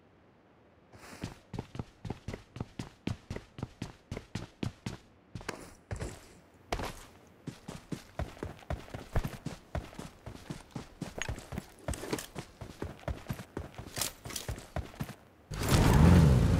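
Footsteps run quickly over floors and ground in a video game.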